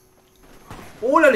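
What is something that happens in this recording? A young man speaks loudly into a close microphone.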